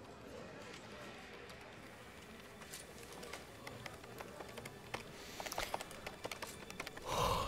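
Fingers tap quickly on a computer keyboard.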